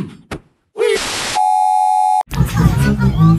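A steady electronic test tone beeps.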